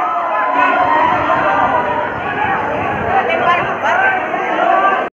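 A crowd of young men shouts and cheers loudly.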